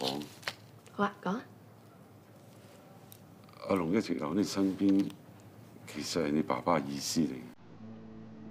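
A woman speaks calmly and softly.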